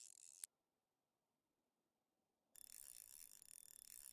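A fishing reel clicks as its line is wound in.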